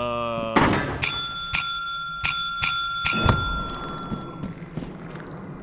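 A small bell rings sharply several times, its chimes ringing on.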